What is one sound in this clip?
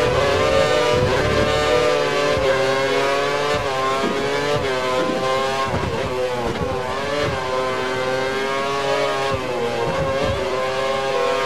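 A racing car engine screams at high revs, rising and dropping in pitch as gears change.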